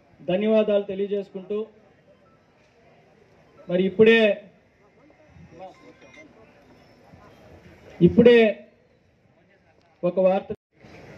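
A young man speaks loudly into a microphone in short bursts.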